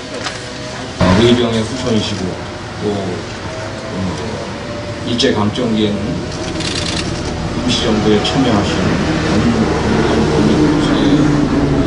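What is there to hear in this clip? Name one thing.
A middle-aged man speaks formally into a microphone, heard through a loudspeaker outdoors.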